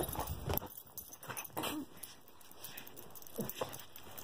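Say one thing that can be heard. A small dog snuffles and licks close by.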